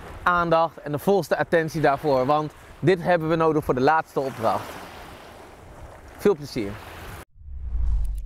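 A man speaks calmly and warmly into a clip-on microphone close by.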